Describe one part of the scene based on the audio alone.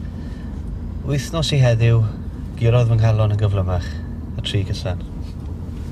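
A second man answers and reads out a short message, close by.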